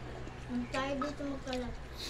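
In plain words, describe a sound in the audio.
Liquid pours from a jug.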